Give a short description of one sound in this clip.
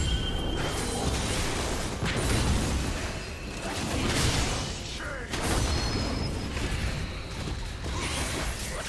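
Fantasy battle sound effects whoosh and crackle as spells are cast.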